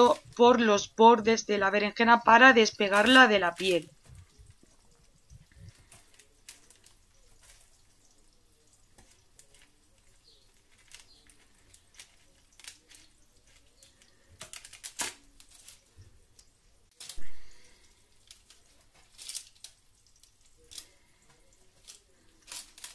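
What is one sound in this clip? Baking paper rustles and crinkles.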